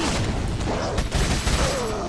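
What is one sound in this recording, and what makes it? A gunshot bangs.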